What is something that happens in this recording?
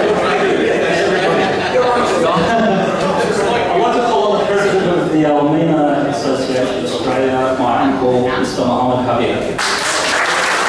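A middle-aged man speaks with animation into a microphone, heard over a loudspeaker.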